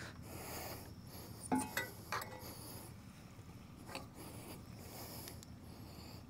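A metal bar knocks inside a hollow pipe.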